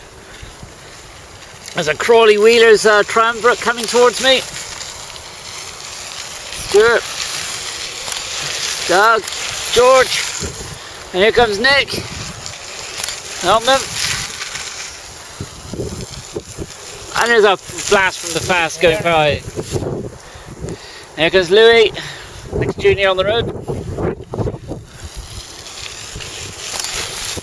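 Bicycle tyres roll over gravel as riders pass close by.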